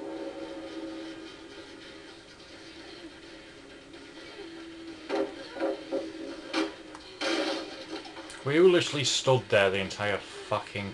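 Eerie video game music plays through a television speaker.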